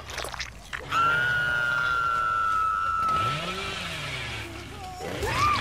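A chainsaw roars loudly with a steady whine.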